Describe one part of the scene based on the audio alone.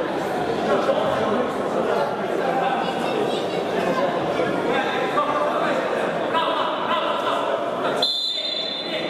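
Men call out to each other across an echoing indoor hall.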